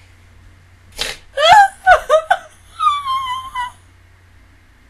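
A young woman shrieks with laughter close to a microphone.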